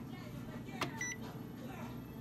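An electronic device gives a short, high beep.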